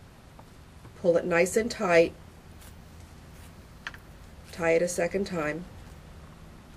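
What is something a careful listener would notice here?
An older woman speaks calmly close by.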